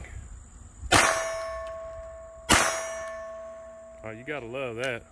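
A steel target rings after each hit.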